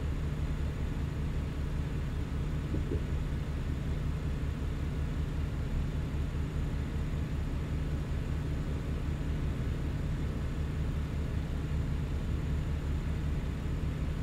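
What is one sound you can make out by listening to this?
A truck engine hums steadily with a low drone.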